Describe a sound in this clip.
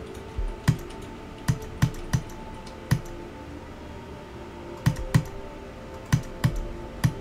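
Electronic game music plays with sharp, punchy beats.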